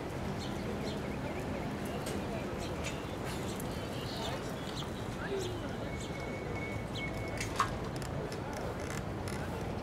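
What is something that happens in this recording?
Cars drive past on the street.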